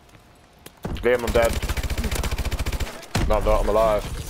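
Rapid automatic gunfire rattles close by.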